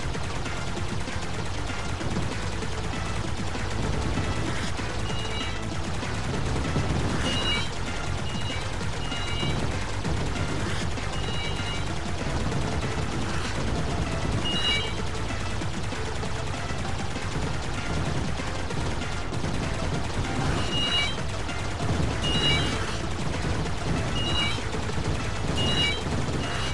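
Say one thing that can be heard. Arcade game lasers fire in rapid repeating zaps.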